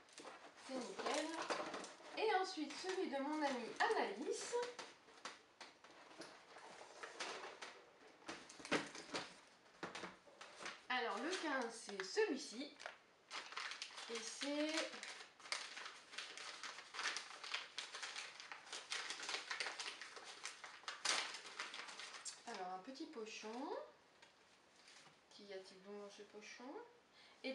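Paper and cardboard rustle and crinkle as a box is handled.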